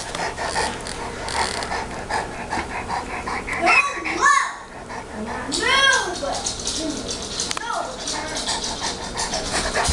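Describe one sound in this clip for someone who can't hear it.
A large dog pants heavily.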